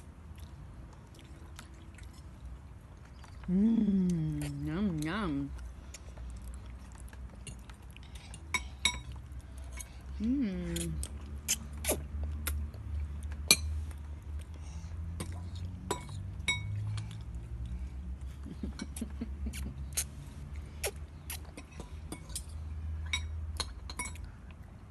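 A fork clinks and taps against a plate.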